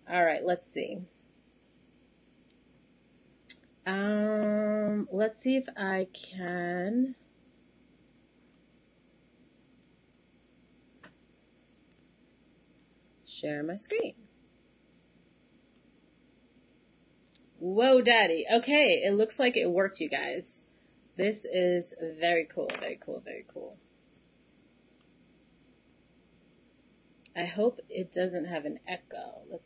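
A woman speaks calmly into a computer microphone, heard in bursts with pauses.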